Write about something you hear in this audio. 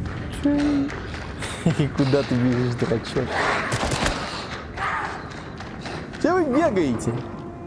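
A man shouts and exclaims excitedly into a nearby microphone.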